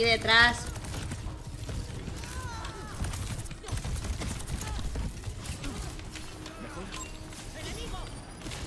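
Gunshots and energy blasts crackle rapidly in a busy fight.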